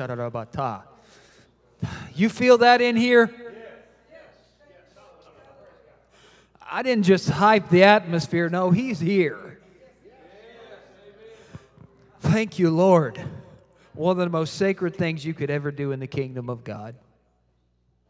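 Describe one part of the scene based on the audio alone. A man speaks with animation through a microphone in a large echoing hall.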